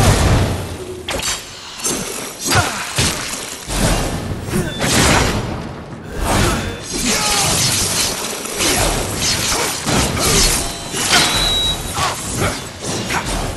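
Lightning crackles and booms.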